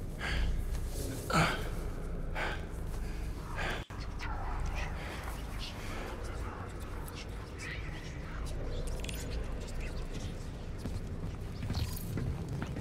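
A young man speaks casually into a close microphone.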